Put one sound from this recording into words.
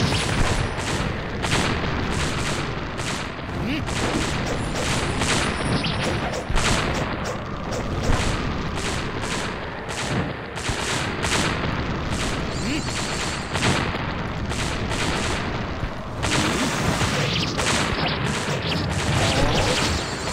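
Lightning bolts crackle and strike repeatedly.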